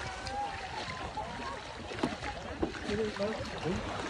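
Water splashes as a swimmer pushes a kayak.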